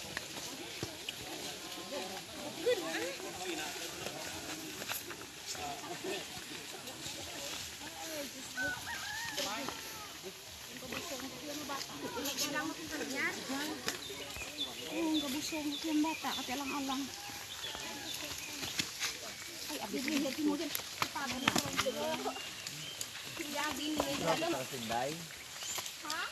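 A crowd of men and women talks and shouts excitedly outdoors.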